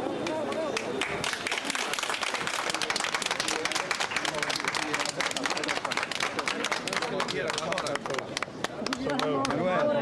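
A crowd of people applauds outdoors.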